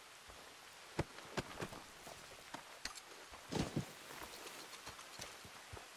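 Footsteps crunch on a stony path outdoors.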